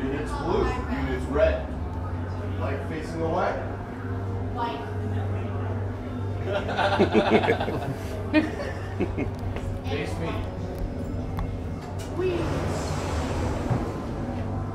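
A crowd of adults chatter nearby in an enclosed corridor.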